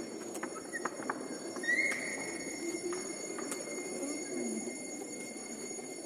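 An old wooden door creaks open.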